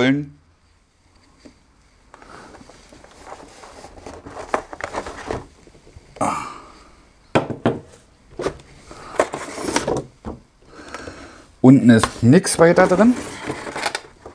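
Cardboard rustles and scrapes as a box is unpacked.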